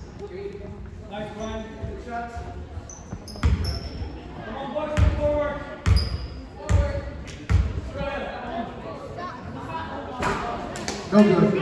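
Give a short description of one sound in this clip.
Young players and spectators talk and call out in an echoing hall.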